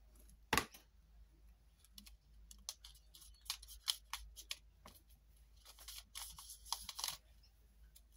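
Paper and card rustle and tap as hands handle them.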